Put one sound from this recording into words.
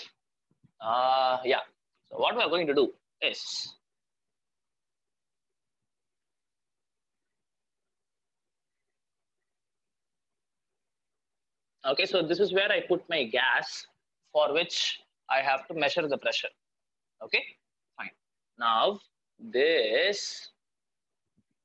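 A young man speaks calmly and close to a microphone, with gaps between his sentences.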